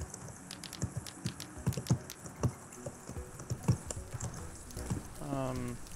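Fire crackles and roars.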